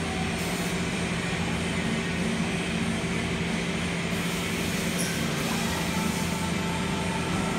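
A robot arm whirs as it moves.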